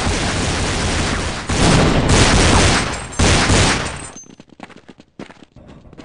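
Pistol shots fire in quick bursts.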